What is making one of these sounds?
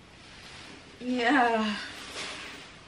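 A young woman exclaims in a lively, sing-song voice close by.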